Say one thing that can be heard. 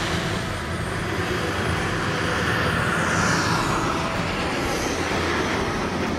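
A radio-controlled model jet's turbine whines as the model rolls out after landing.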